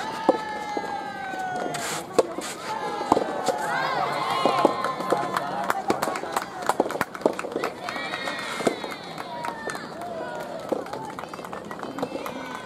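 Rackets strike a soft tennis ball with sharp pops.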